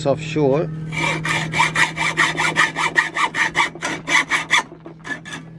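A hacksaw cuts back and forth through metal with a fast rasping rhythm.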